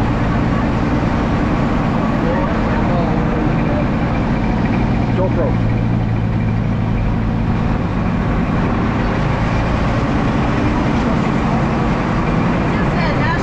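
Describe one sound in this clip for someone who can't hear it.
Tyres crunch and rattle over a rough gravel road.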